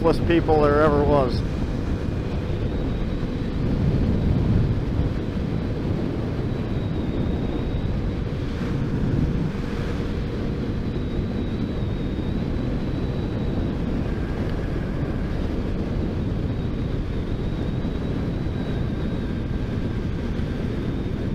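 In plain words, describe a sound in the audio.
Wind roars and buffets loudly against the microphone.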